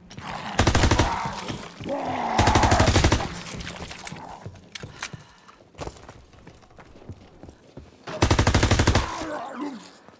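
A rapid-fire gun fires loud bursts.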